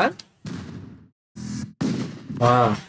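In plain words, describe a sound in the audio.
Gunshots bang sharply.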